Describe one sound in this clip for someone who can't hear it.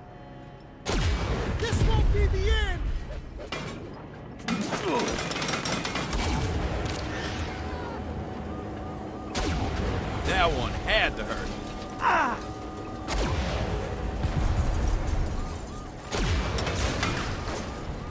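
A cannon fires in bursts.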